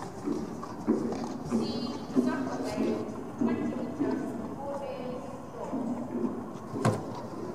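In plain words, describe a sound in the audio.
A woman speaks, calling out clearly in a large echoing hall.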